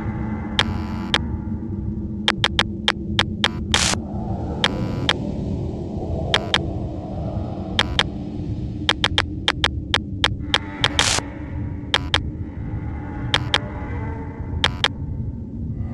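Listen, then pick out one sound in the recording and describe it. A mouse clicks sharply, again and again.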